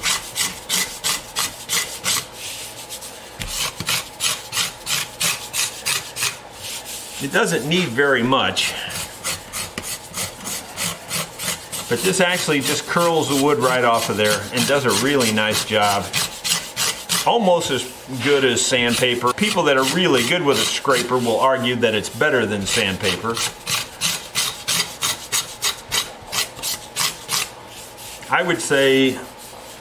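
A metal scraper rasps rapidly back and forth across wood.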